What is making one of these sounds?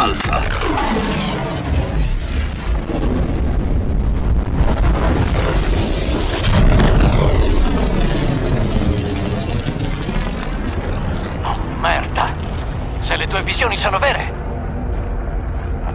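A deep rumbling roar swells and slowly fades.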